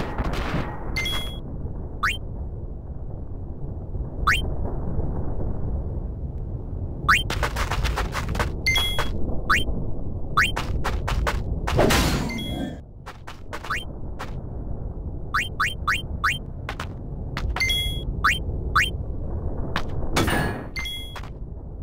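Short electronic beeps tick as a menu cursor moves.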